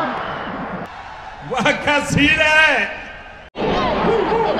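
A middle-aged man speaks forcefully into a microphone over loudspeakers.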